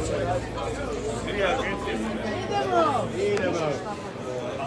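Men shout and cheer loudly close by.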